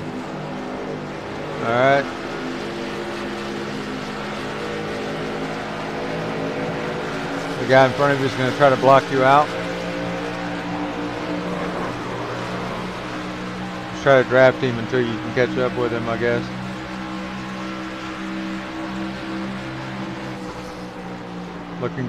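A race car engine drones steadily at speed.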